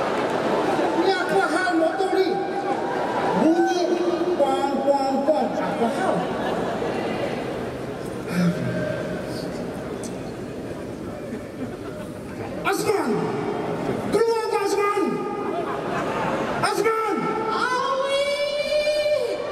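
A man sings and shouts through a microphone over loudspeakers.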